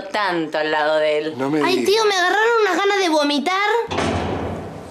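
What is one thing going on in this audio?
A second young woman speaks close by.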